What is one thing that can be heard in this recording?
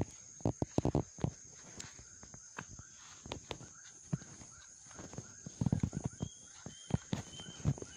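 A caught fish flaps and thrashes on a fishing line.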